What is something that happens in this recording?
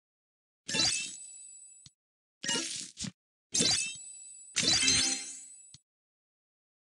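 Bright chiming game sounds play as pieces match and pop.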